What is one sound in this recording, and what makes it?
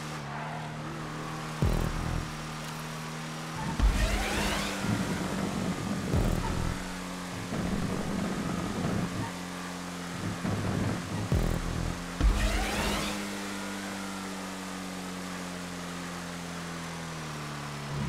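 A race car engine hums steadily at speed.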